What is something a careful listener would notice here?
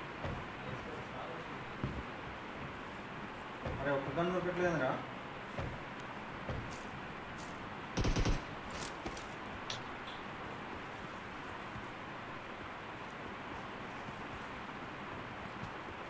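Footsteps clang on metal as a game character runs.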